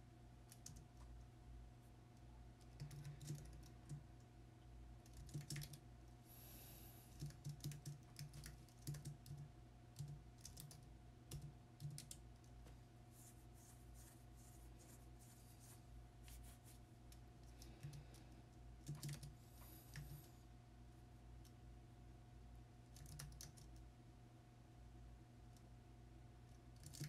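Keys click on a computer keyboard in short bursts of typing.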